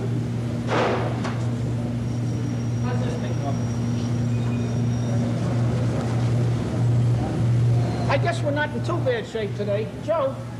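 A machine hums steadily.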